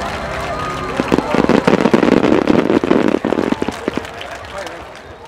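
Fireworks crackle and sizzle as sparks fall.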